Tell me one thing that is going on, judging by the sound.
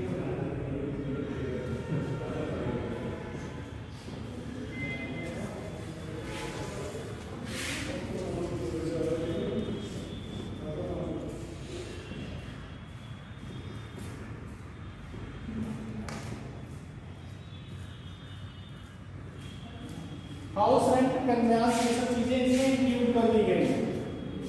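A man speaks calmly nearby in a slightly echoing room.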